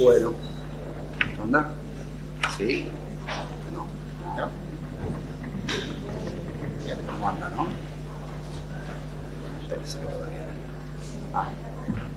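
An elderly man speaks with animation into a microphone in a large room.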